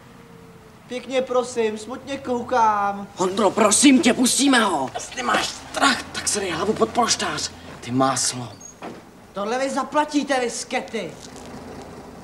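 A man speaks urgently nearby.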